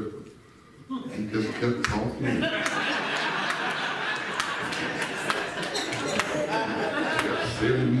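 A crowd of people talk and answer all at once.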